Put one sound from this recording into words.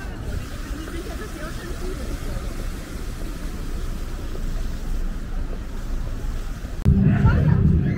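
Cars drive past on a nearby road.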